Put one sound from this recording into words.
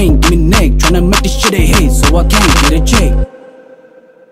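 A young man raps rhythmically, close up.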